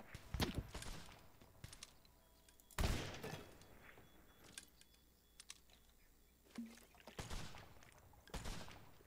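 Gunshots boom loudly, several times.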